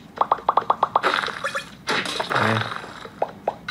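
A crumbling crash of falling bricks plays from a small speaker.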